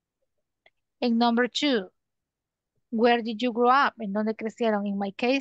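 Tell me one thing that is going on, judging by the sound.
A woman speaks clearly and calmly over an online call.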